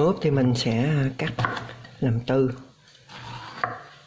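A knife cuts through firm vegetable on a wooden board.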